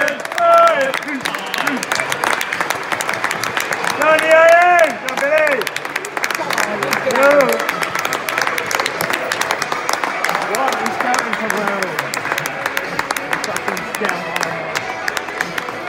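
A crowd cheers and claps in the distance.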